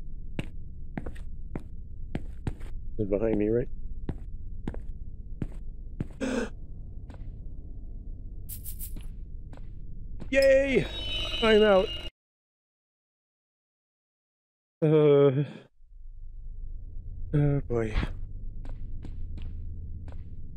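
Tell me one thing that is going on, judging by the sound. Footsteps tap on a stone floor in an echoing passage.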